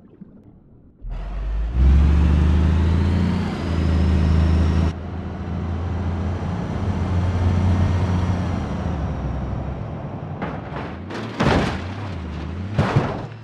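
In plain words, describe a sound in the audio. A bus engine roars steadily.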